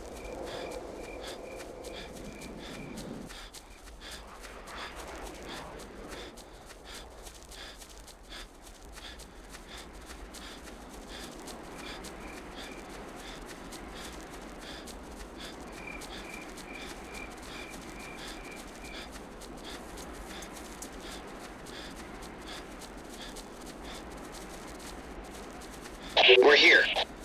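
Footsteps thud quickly on grass as soldiers run.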